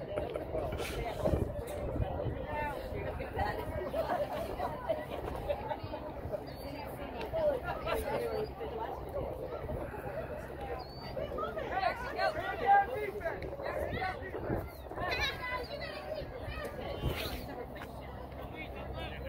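Several young men and boys talk and call out nearby outdoors.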